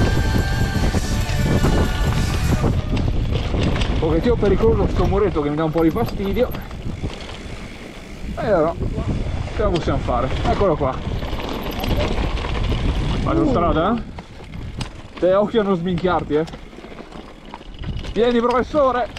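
Bike tyres crunch and rattle over a rough dirt trail.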